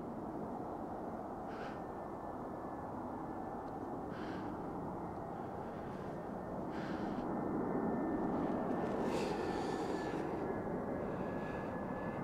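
A jet airliner's engines roar steadily as it approaches and grows louder.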